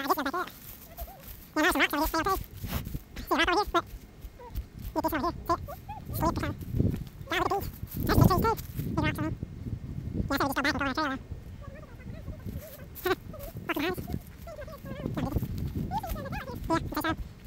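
Footsteps crunch through dry leaves.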